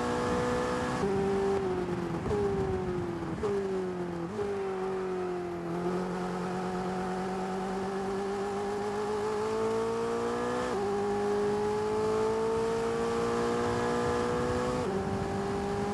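A racing car's gears shift with sharp jolts in the engine note.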